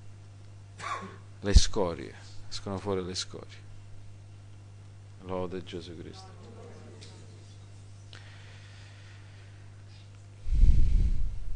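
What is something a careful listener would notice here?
A middle-aged man speaks with animation into a microphone, in pauses.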